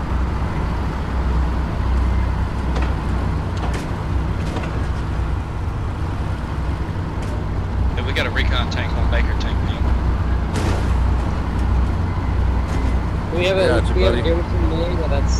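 A tank engine rumbles low while driving.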